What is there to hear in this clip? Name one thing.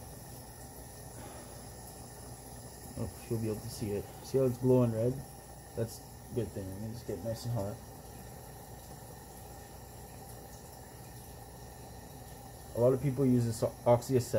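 A gas torch flame roars steadily.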